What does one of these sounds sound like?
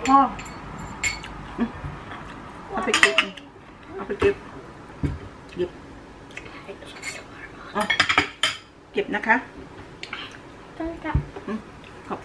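Dishes clink on a table.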